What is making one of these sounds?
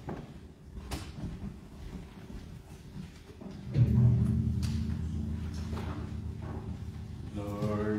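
A man speaks through a microphone and loudspeakers in an echoing room.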